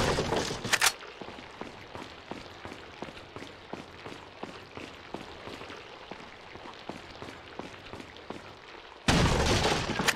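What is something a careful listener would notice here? Boots step on a stone floor.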